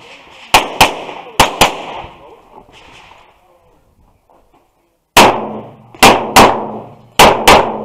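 A pistol fires sharp shots in quick pairs, each crack ringing out outdoors.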